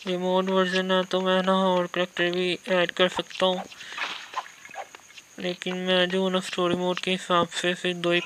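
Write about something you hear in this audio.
Small game coins clink as they are picked up.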